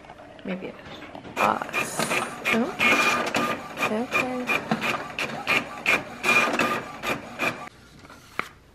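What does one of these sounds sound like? A printer whirs and clicks as it feeds paper out.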